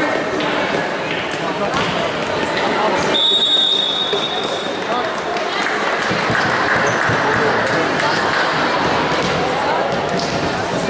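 Players shout and chatter, echoing in a large hall.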